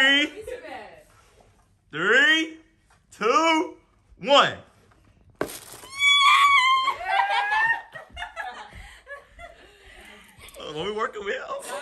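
A young woman laughs happily.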